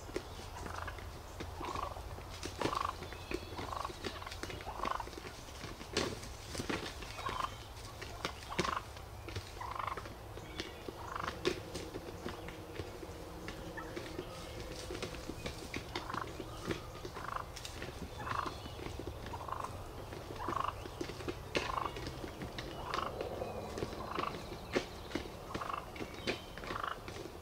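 Strutting turkeys make a low, deep drumming hum.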